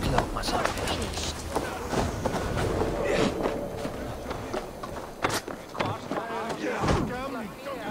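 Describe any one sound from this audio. Wooden planks creak and thud as someone climbs.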